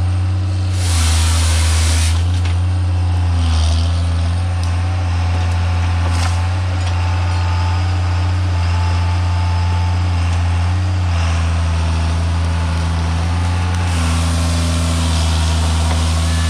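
A heavy diesel engine rumbles steadily close by.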